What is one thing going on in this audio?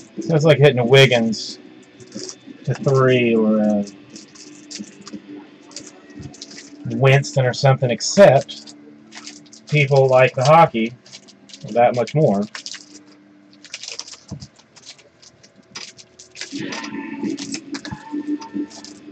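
Foil card wrappers crinkle and rustle as hands handle them.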